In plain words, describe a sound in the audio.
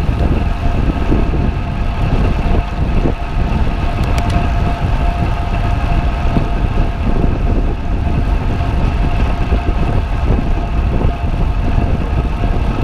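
Wind rushes and buffets loudly past a moving bicycle.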